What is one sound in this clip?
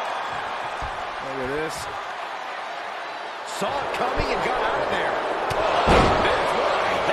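A large crowd cheers and roars in an arena.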